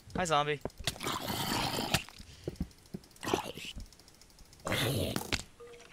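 A sword strikes a zombie with dull thuds.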